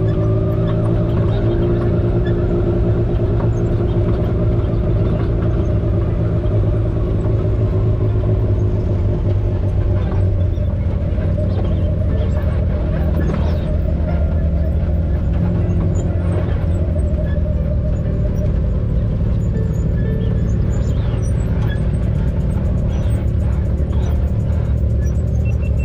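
An off-road vehicle's engine drones steadily up close.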